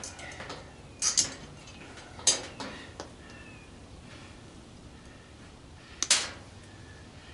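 Metal parts click and clink in a man's hands.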